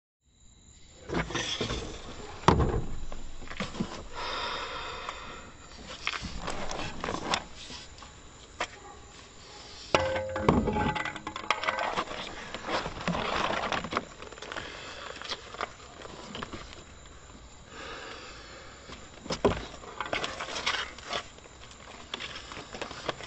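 A middle-aged man talks in a low voice close by.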